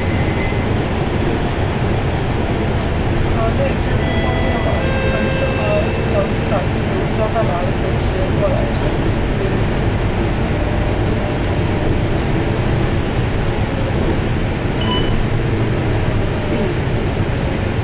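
A bus engine rumbles steadily from inside as the bus drives along.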